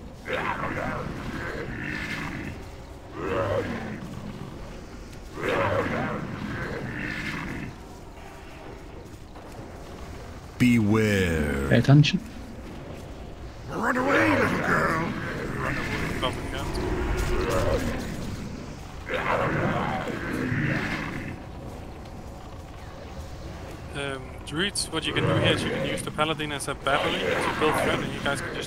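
Spells crackle and burst in a game battle.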